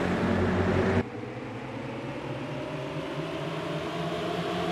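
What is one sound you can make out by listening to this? Racing car engines drone more distantly.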